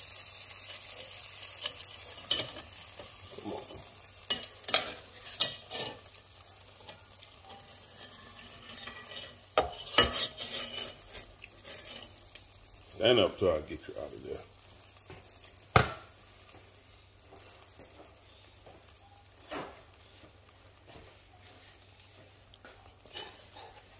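A spoon scrapes and knocks against a metal pot.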